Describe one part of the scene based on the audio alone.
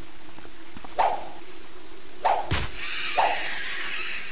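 A sword swishes and strikes a small creature several times.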